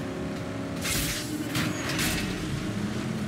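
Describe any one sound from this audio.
Metal crashes and thuds as vehicles collide.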